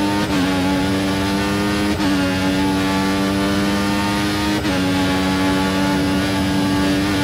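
A racing car engine screams at high revs, dropping briefly with each upshift.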